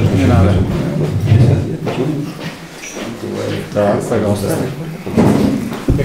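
An elderly man speaks calmly into a nearby microphone.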